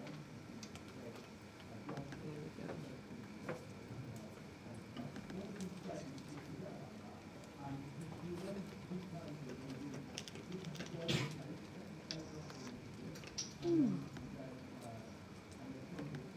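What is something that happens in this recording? Laptop keys click under typing fingers.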